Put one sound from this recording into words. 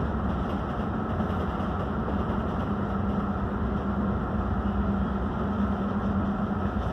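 A boat's engine hums steadily and low.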